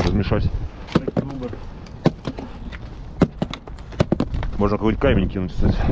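Footsteps crunch on a gritty roof.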